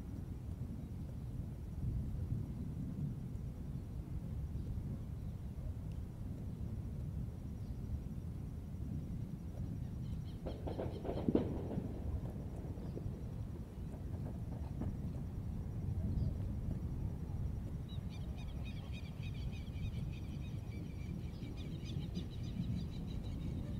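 A capybara tears and chews grass up close.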